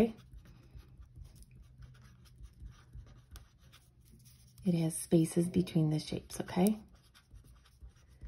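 A felt marker squeaks and scratches across paper.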